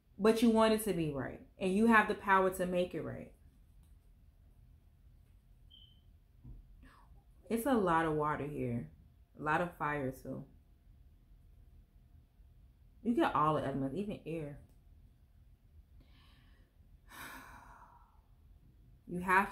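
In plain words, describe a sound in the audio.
A woman speaks calmly and closely, in bursts with pauses.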